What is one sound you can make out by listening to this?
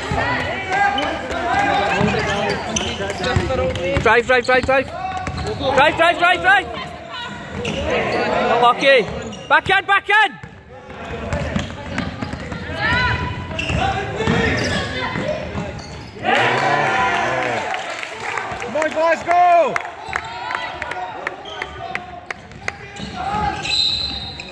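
Young men shout to each other in an echoing sports hall.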